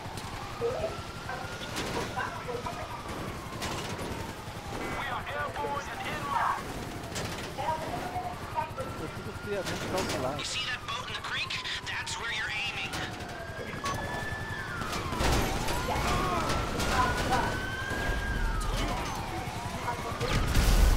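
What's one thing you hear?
A heavy truck engine roars as it drives over rough ground.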